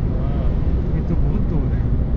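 A truck rumbles past close by.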